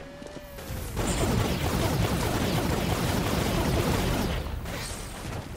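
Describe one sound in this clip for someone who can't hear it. Energy blasts burst and crackle loudly.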